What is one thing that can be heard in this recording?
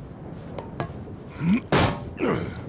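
A man grunts as he leaps.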